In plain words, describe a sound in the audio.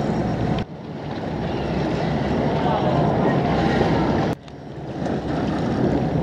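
A whale splashes heavily as it surges out of the water.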